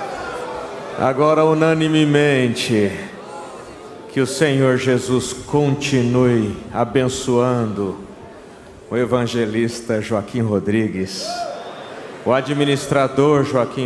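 A man shouts fervently into a microphone, heard through loudspeakers.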